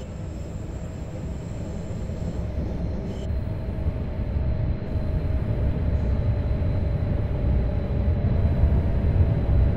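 A windscreen wiper swishes across the glass.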